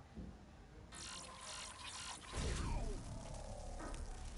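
A loud electronic crackle bursts out.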